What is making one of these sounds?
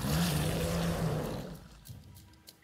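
Water splashes as a creature rises from it.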